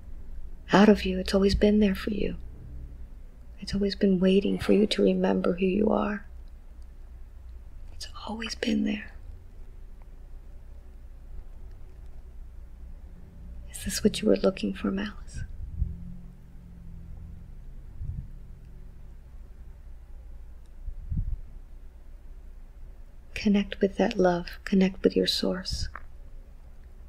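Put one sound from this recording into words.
A middle-aged woman speaks softly and slowly, close to a microphone, in short bursts with long pauses.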